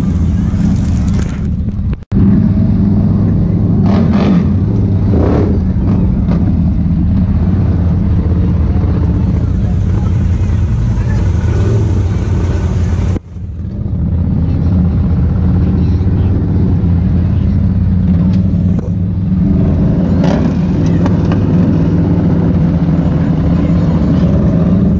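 An off-road quad engine rumbles steadily up close.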